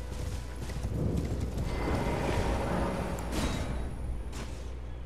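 A magical whoosh swells and rushes.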